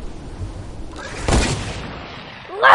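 A gun fires sharp shots.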